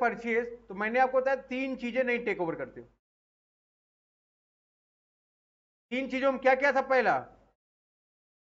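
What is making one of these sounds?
A young man speaks calmly and explains close to a microphone.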